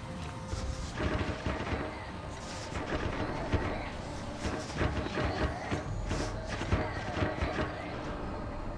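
Footsteps patter on metal.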